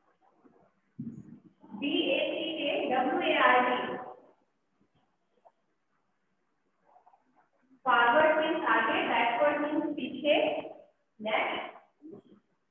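A woman speaks loudly and clearly to a class.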